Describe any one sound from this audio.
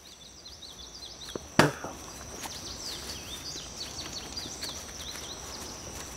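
A fish flops and thumps on grass.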